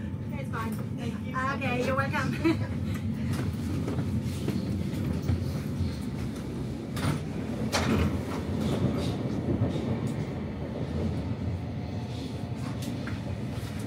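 A train's wheels clack and knock on the rails.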